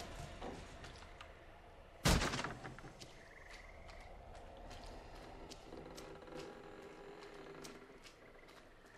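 Heavy footsteps thump on wooden boards.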